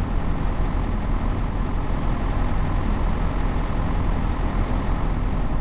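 A train's motor hums low and steady.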